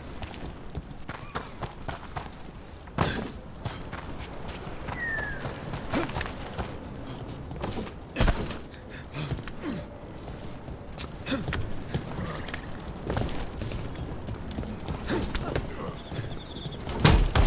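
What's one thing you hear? Footsteps crunch over dirt and stone.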